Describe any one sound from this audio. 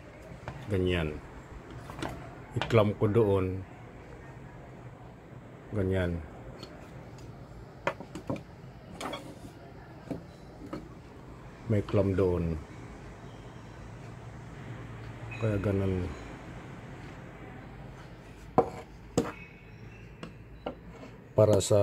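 Wooden parts of a hand-worked mechanism clack and knock.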